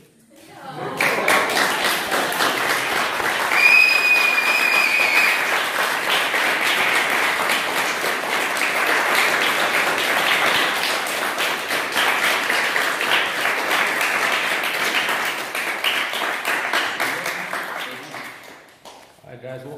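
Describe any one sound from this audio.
A group of people clap and applaud in an echoing hall.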